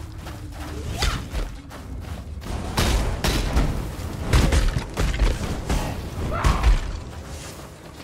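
Fire spells whoosh and explode.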